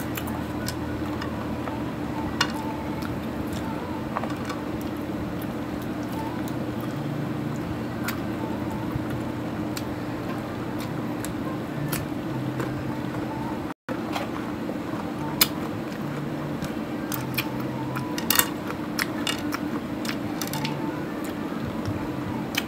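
Wooden skewers clatter against a plate.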